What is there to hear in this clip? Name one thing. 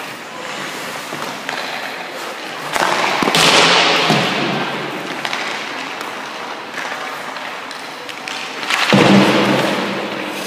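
Ice skate blades scrape and spray ice in sharp bursts, echoing in a large rink.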